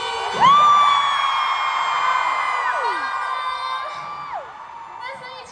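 A large crowd screams and cheers loudly in a big echoing hall.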